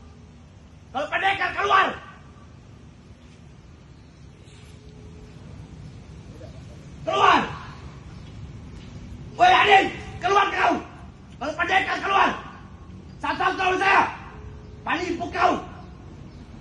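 A man shouts in short angry bursts outdoors.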